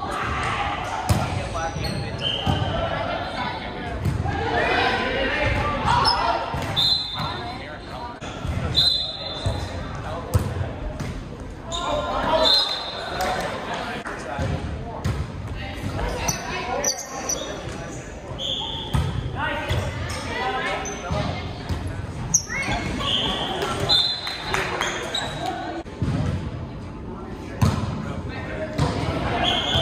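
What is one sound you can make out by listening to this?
Young men and women shout and call out across the court.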